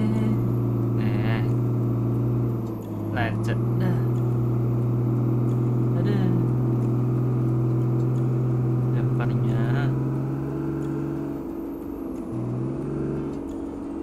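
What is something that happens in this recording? A truck rattles and creaks over a rough dirt road.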